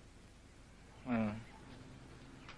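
A man speaks briefly into a phone.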